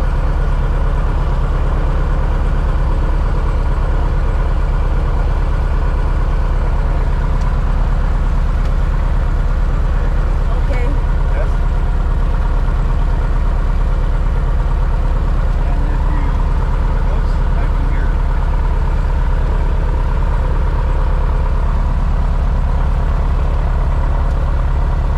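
An aircraft engine drones loudly and steadily close by.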